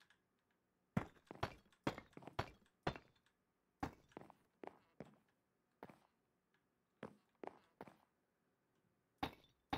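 Stone blocks are set down one after another with short, dull knocks.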